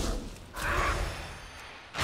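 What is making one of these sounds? A magic bolt zaps with a sharp crack.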